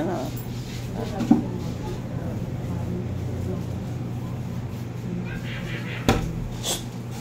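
A small child laughs close by.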